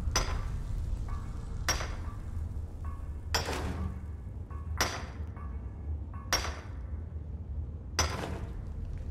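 A pickaxe strikes rock in sharp, ringing blows.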